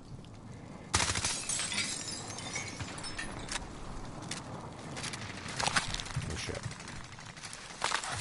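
Footsteps clatter across a metal roof.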